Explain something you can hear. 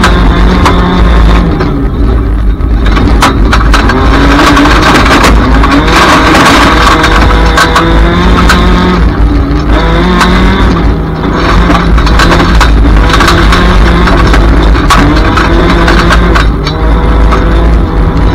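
Gravel and stones clatter against the underside of a car.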